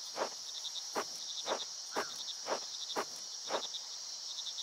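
Footsteps thud steadily on soft ground.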